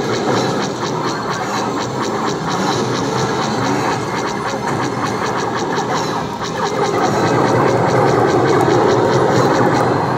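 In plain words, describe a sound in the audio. Rapid laser blasts fire over and over from an arcade game.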